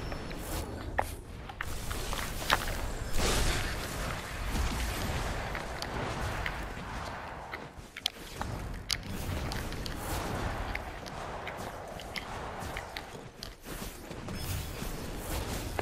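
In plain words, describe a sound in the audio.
Magic blasts crackle and zap in sharp bursts.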